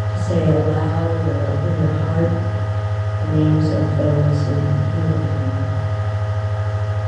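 A middle-aged woman chants through a microphone.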